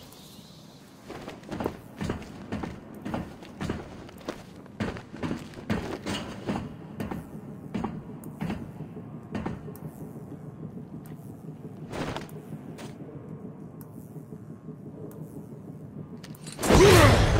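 Footsteps clank slowly on a metal floor.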